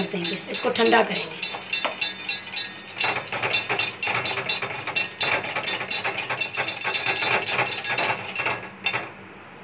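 A metal whisk beats rapidly against the inside of a steel pot, clinking and scraping.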